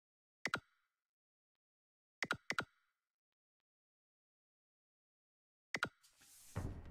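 Menu buttons click sharply.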